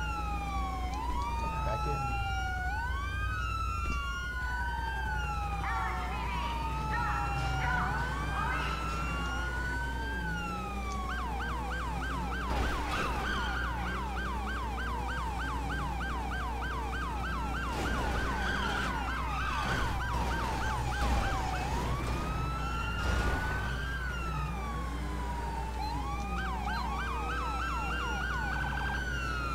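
A car engine revs loudly.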